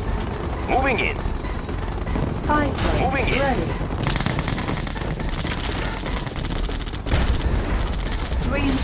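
Explosions and gunfire rumble from a video game.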